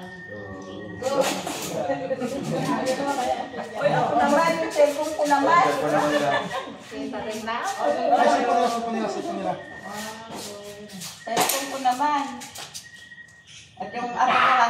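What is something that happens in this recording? Several adults talk and laugh over one another, loudly and with animation.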